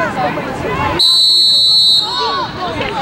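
A referee blows a whistle in one short, shrill blast.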